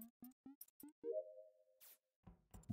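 A short chime rings as a task is completed.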